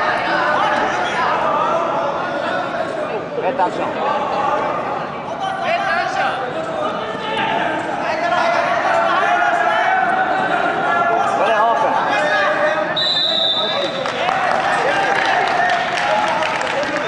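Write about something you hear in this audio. A crowd of spectators shouts and calls out in a large echoing hall.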